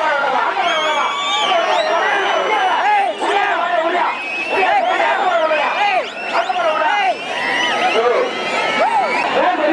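A large outdoor crowd shouts and cheers loudly.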